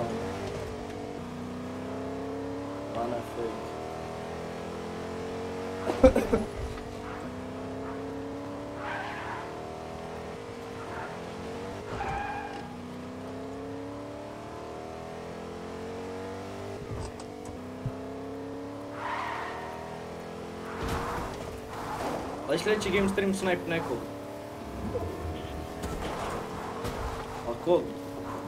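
A pickup truck engine revs up through its gears.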